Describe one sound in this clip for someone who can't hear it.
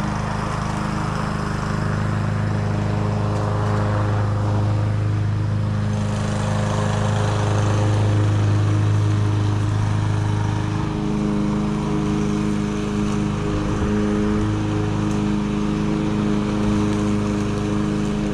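A lawn mower engine drones steadily nearby.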